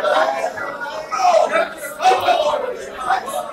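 People clap their hands close by.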